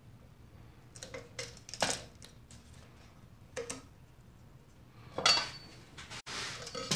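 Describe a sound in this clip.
Wooden tools knock and clatter on a wooden bench.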